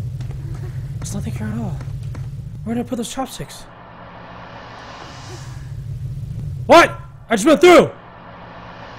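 A young man speaks close into a microphone with animation.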